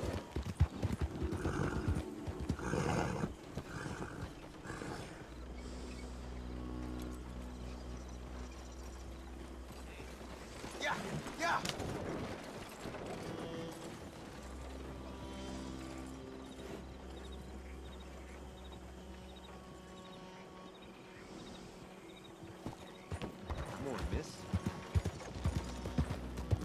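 Horse hooves pound quickly on a dirt road.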